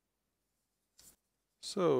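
Playing cards slide and rustle against each other.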